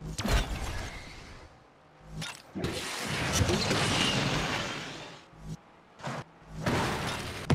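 A racing car engine roars at high speed.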